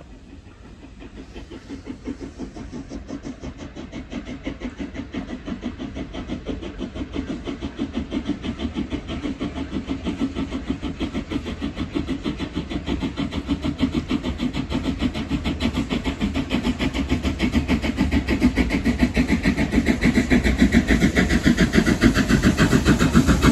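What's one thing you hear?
A steam locomotive chugs closer with a fast, steady rhythm of puffs, growing louder.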